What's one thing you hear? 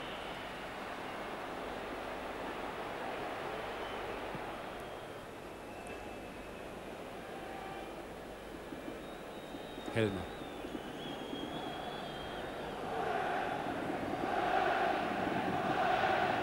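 A large stadium crowd roars and chants steadily, swelling louder near the end.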